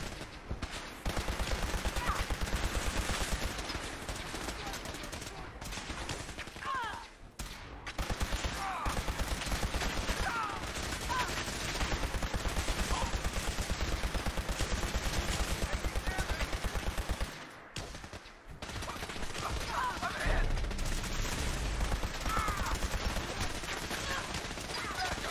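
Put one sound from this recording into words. Laser rifles fire in rapid bursts of crackling zaps.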